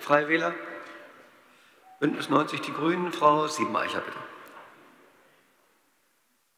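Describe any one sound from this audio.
An older man speaks calmly into a microphone in a large echoing hall.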